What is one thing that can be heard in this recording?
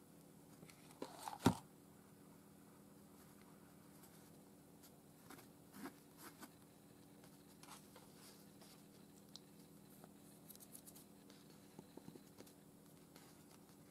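Paper pieces rustle and tap softly as hands handle them.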